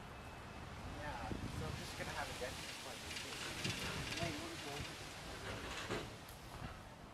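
A teenage boy speaks calmly nearby.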